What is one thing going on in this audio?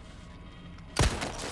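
A gunshot rings out loudly.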